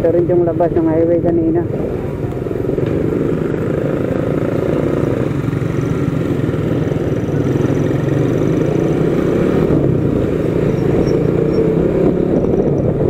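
Wind buffets past the rider.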